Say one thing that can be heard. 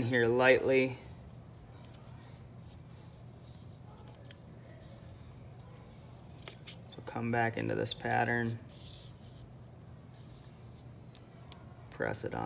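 Fingers rub softly over paper.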